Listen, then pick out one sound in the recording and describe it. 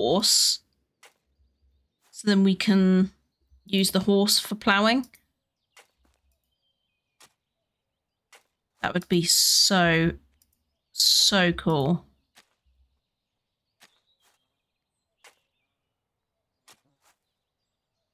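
A hoe chops into soft soil.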